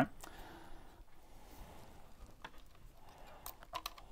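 Computer keys click.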